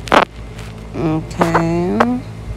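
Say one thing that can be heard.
A young woman speaks playfully close to a microphone.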